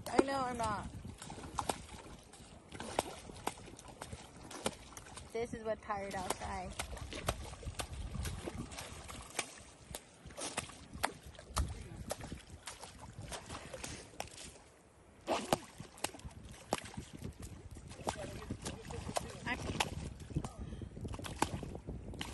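Small waves lap onto a sandy shore.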